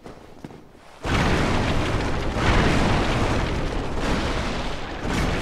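Wooden barrels smash and clatter.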